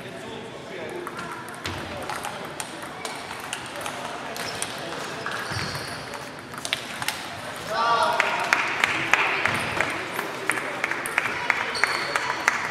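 Table tennis balls click on tables and paddles throughout a large echoing hall.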